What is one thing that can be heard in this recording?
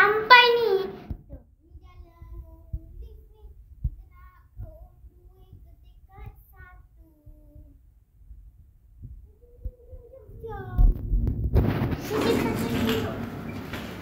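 A young girl speaks close by, with animation.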